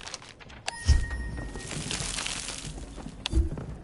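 A bright magical shimmer swells and fades.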